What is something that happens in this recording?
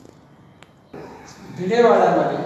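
A man speaks clearly and close by.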